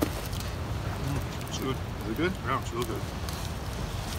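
A man talks calmly nearby outdoors.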